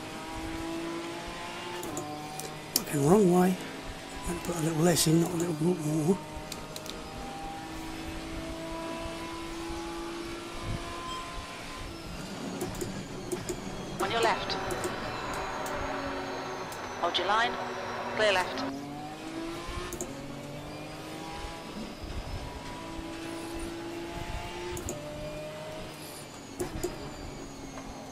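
A race car engine roars and revs up and down through the gears.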